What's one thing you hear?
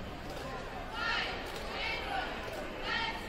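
Young women cheerleaders shout a chant in unison.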